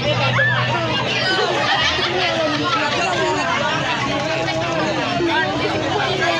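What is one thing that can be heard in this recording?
A lively crowd chatters and calls out outdoors.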